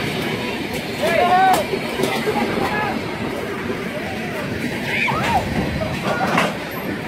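A freight train rumbles past on the tracks.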